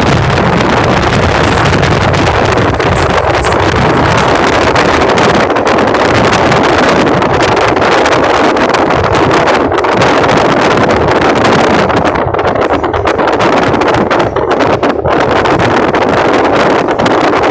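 Wind and road noise roar past a vehicle moving at speed.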